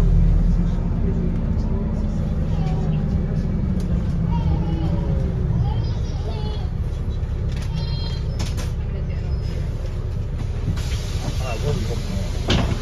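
Passengers talk quietly nearby.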